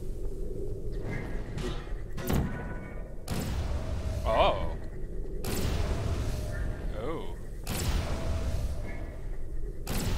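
A crackling energy ball hums and bursts against a wall.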